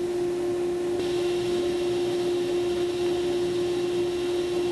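A table saw blade cuts through wood.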